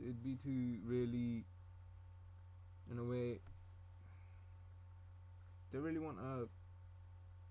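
A young man speaks calmly in short bursts close to a microphone.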